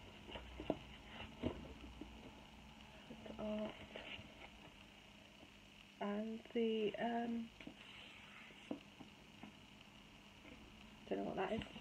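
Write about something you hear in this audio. A book's pages and cover rustle and tap.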